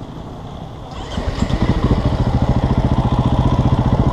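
A motorbike engine revs up loudly and pulls away.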